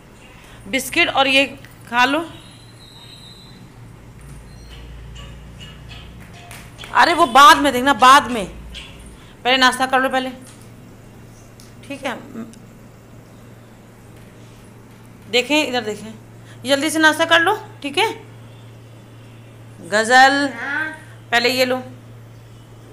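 A young girl speaks nearby in short bursts.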